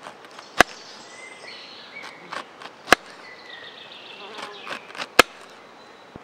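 A knife cuts through a zucchini onto a cutting board.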